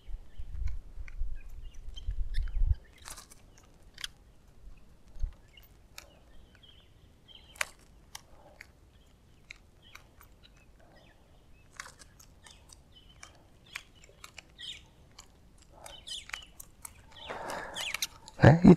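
A fishing reel clicks and whirs as line is reeled in.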